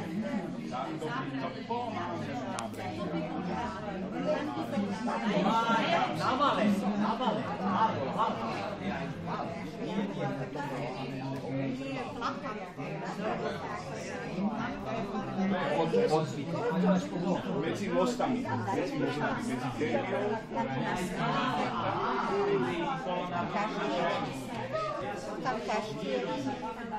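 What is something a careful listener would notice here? Several men and women chat at once in a room with some echo.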